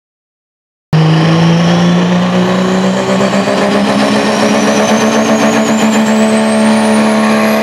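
A truck's turbo whines, rising steadily in pitch.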